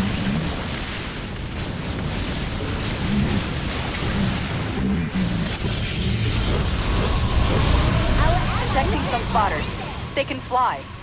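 Rapid gunfire and explosions rattle in a battle.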